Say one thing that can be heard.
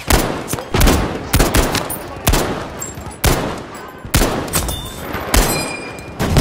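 A heavy machine gun fires loud single shots that echo across open ground.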